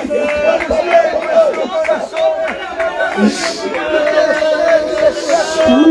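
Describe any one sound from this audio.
A crowd of people sing together outdoors.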